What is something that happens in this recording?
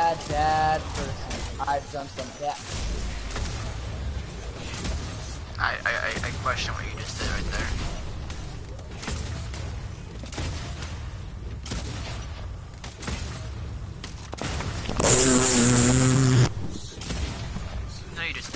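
Gunfire and blasts ring out in a fast-paced battle.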